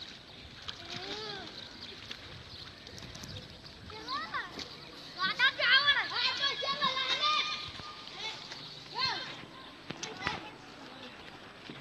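Children splash about in shallow floodwater.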